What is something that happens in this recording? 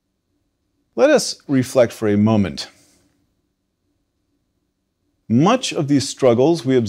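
A middle-aged man speaks calmly and clearly into a microphone, with a pause between phrases.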